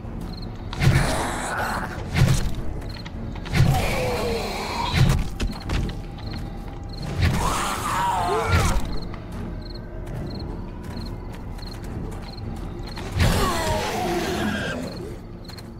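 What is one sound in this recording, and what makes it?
A zombie growls and groans loudly.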